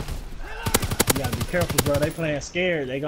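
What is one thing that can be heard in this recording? Rapid gunshots fire in a quick burst.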